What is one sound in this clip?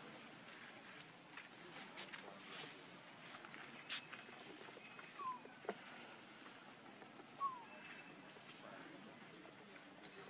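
Small feet patter and rustle softly over dry leaves and dirt.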